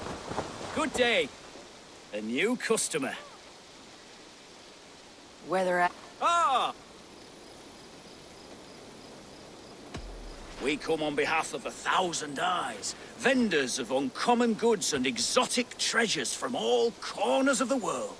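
A middle-aged man speaks cheerfully and close by.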